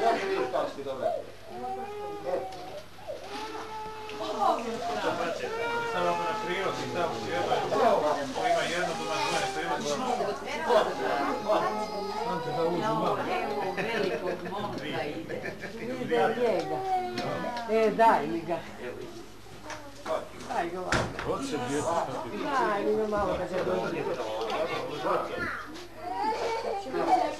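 Children chatter and call out excitedly close by.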